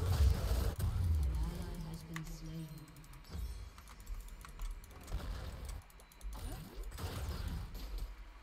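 Magic spells whoosh and crackle in a video game.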